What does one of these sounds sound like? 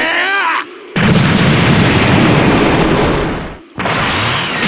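An explosion rumbles and dust roars.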